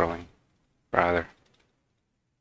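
A young man speaks briefly into a microphone, close up.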